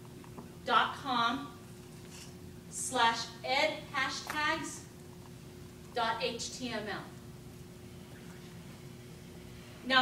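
A woman speaks calmly in a room with some echo, pausing between phrases.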